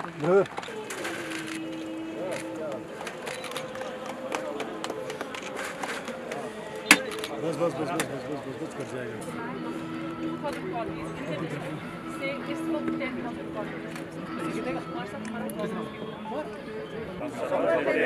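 A man speaks loudly to a crowd outdoors.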